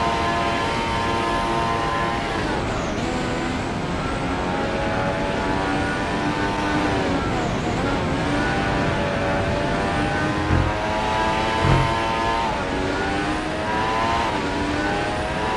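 A racing car engine screams, rising and falling in pitch as it shifts gears and slows for corners.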